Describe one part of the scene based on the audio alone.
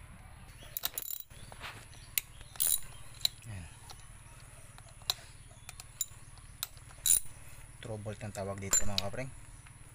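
Small metal parts click and clink.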